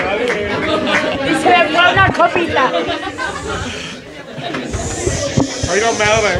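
A small crowd of people laughs and chatters nearby.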